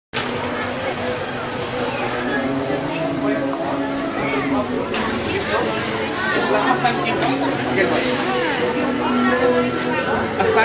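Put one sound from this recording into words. A crowd of people chatters and calls out in an open street.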